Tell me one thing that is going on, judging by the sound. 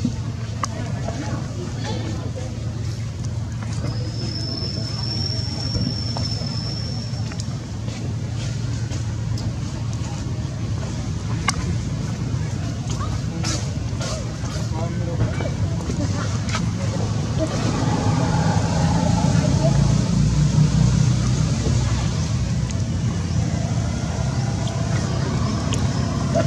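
A monkey chews and crunches on a sugarcane stalk.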